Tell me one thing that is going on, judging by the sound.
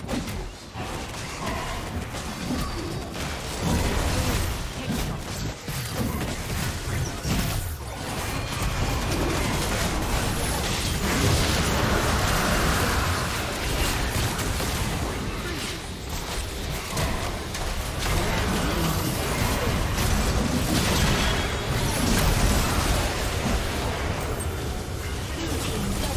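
Magic blasts and strikes crackle and boom during a fierce battle.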